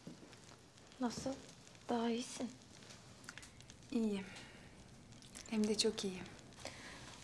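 A young woman speaks softly and calmly nearby.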